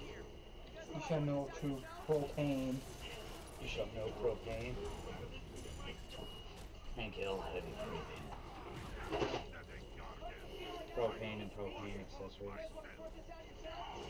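Young men talk and react excitedly close to a microphone.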